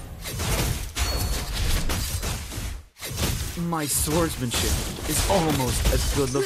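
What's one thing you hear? Magic spells whoosh and crackle amid clashing battle sounds.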